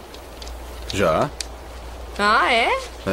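A young man speaks quietly, close by.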